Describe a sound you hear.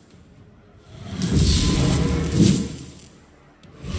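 A heavy hammer strikes with a loud thud.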